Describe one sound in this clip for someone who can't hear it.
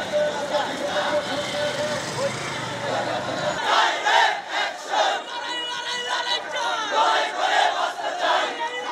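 A crowd of men shouts and chants loudly outdoors.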